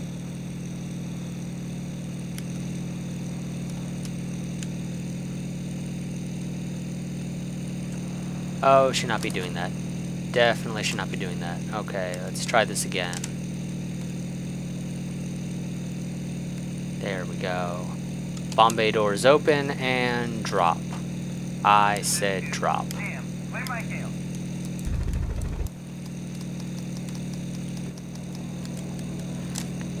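Aircraft engines drone steadily with a low hum.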